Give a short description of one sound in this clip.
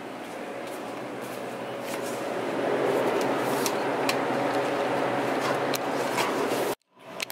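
Metal cans clink together as a hand pulls one from a shelf.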